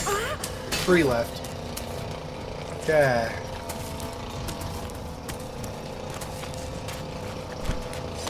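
Footsteps run over dry ground.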